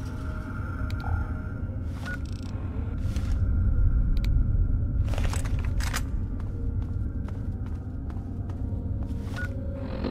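Footsteps thud on a hard floor in an echoing tunnel.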